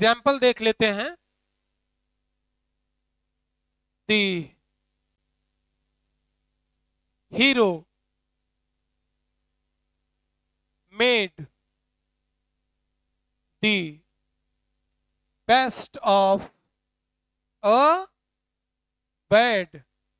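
A young man speaks calmly in short bursts, with silence between them.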